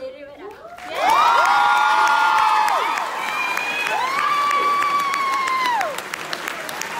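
Young women scream and cheer with excitement.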